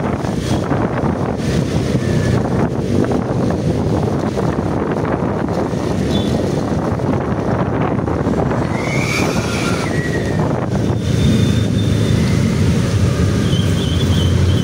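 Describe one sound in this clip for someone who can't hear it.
Wind rushes past noisily.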